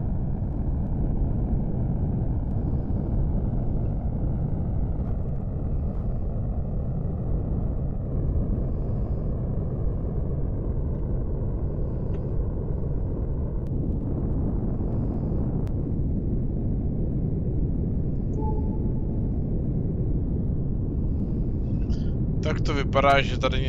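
A deep engine rumbles steadily.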